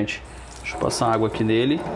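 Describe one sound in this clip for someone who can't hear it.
Tap water runs and splashes into a metal sink.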